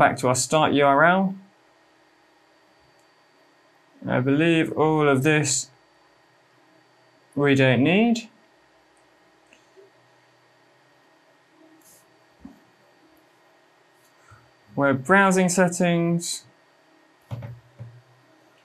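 A young man talks calmly and close to a microphone, in short bursts.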